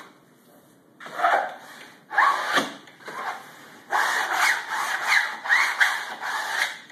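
A hand tool scrapes and rasps against a wall in quick strokes.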